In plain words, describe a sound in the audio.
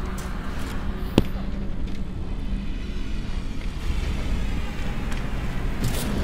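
Footsteps clank on a metal floor.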